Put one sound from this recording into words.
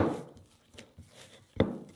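Dough is pressed and squished in a glass bowl.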